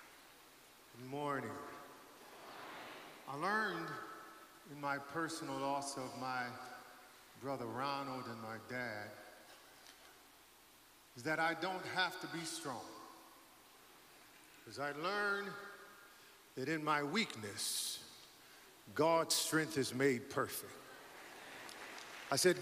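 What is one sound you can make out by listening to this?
A man sings slowly into a microphone, heard over loudspeakers.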